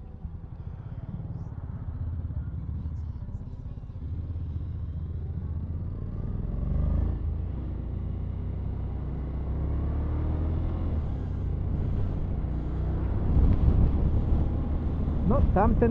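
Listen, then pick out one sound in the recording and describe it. A motorcycle engine revs up and pulls away, growing louder.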